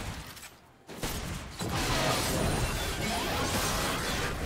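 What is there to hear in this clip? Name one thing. Video game combat effects whoosh and clash.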